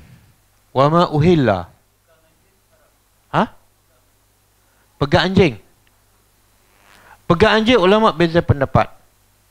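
A middle-aged man lectures through a clip-on microphone, speaking in short bursts.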